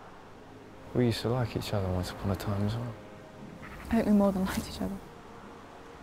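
A young woman answers quietly.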